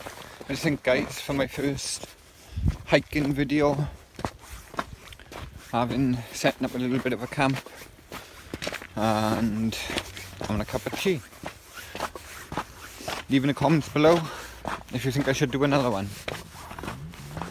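A man talks with animation, close to the microphone.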